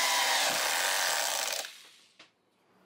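A cordless drill whirs, driving a screw into wood.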